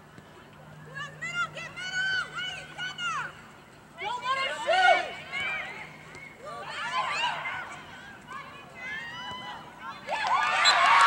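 Young women shout to each other across an open field.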